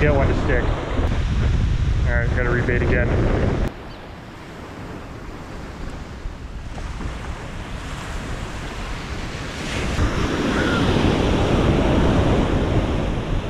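Wind buffets the microphone in loud gusts.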